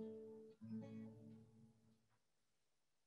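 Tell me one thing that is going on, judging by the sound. A young woman sings softly into a microphone.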